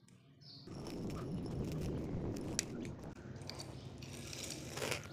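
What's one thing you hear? Small plastic clicks and wire rustles come from hands handling a wired socket.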